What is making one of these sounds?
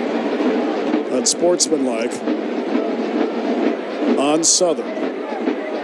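A man announces a penalty through a stadium loudspeaker, echoing outdoors.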